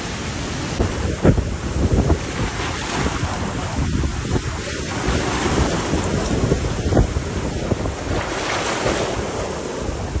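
Waves crash and splash against tree trunks.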